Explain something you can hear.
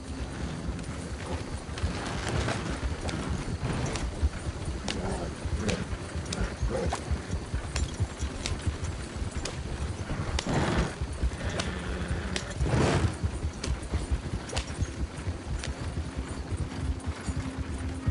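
A horse's hooves clop steadily on a dirt track.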